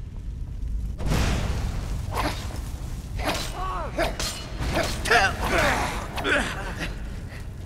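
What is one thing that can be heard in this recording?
A magic blast roars and crackles loudly.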